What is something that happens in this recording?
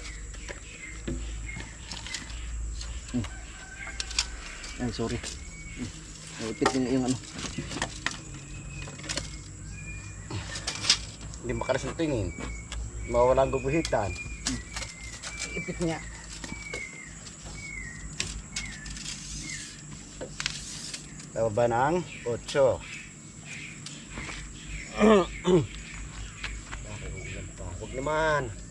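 Men talk with each other nearby, calmly.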